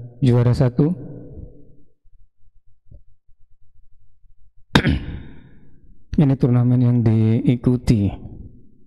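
A man speaks calmly into a close headset microphone.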